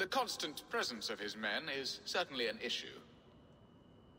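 An older man speaks calmly and closely.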